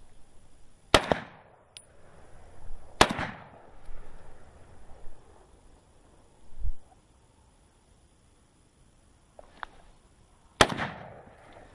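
A shotgun fires loud, sharp shots outdoors that echo off the hills.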